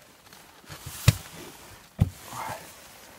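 A fish flaps and thumps on a boat floor.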